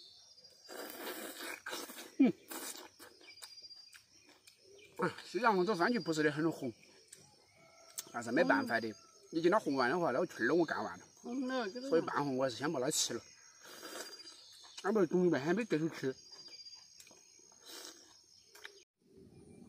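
A young man chews and slurps fruit noisily.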